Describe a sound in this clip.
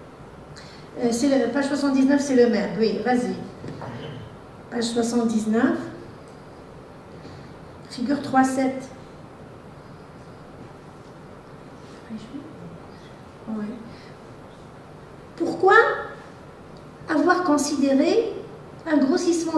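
A woman speaks through a microphone in an echoing hall, in short bursts with pauses.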